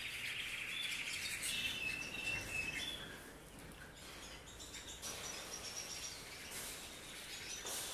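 A wire cage rattles as it is handled.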